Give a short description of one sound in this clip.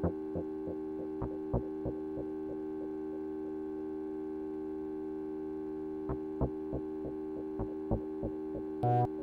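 A modular synthesizer plays a steady droning tone.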